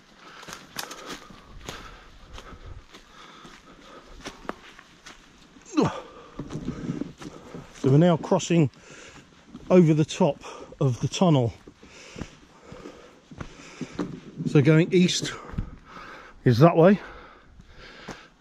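Footsteps crunch on a dry leafy dirt path.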